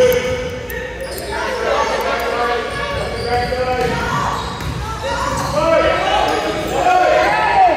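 Children and adults chatter and shout across a large echoing gym.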